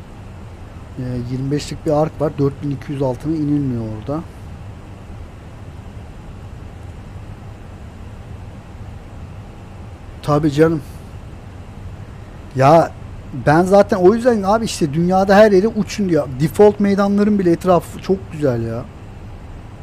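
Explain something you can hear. A middle-aged man talks calmly into a headset microphone, close by.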